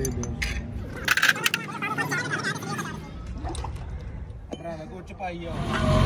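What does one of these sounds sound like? A wrench clinks against metal parts.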